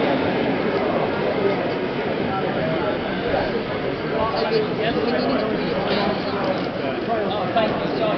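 Many people talk at once in a busy, echoing hall.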